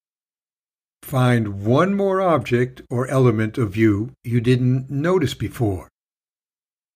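An older man speaks warmly and clearly into a close microphone.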